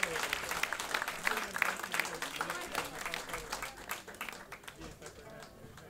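An audience applauds loudly, then the applause dies away.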